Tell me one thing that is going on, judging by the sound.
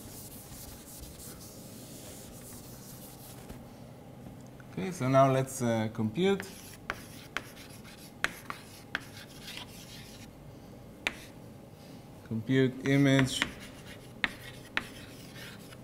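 Chalk taps and scrapes on a blackboard.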